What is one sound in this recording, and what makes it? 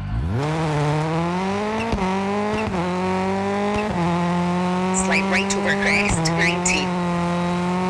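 Gravel crunches and sprays under a rally car's tyres.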